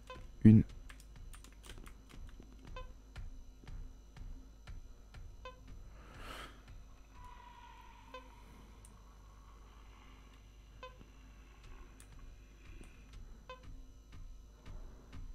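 A handheld tracking device beeps at regular intervals.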